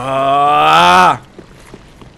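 A man shouts loudly into a microphone.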